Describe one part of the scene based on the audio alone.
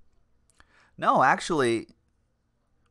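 A man speaks with animation through a close microphone.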